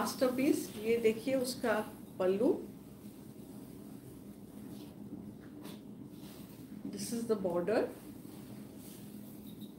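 Silk fabric rustles as a woman handles it.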